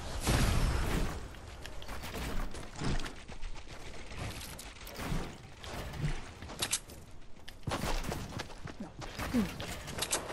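Building pieces clatter and thud into place.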